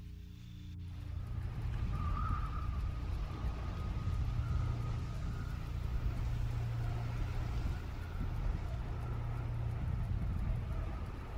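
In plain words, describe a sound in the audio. A small boat motor hums steadily.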